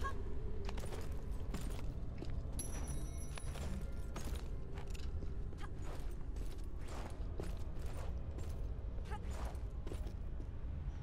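Footsteps patter quickly on stone, echoing faintly.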